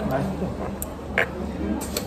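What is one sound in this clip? A fork and spoon scrape on a plate.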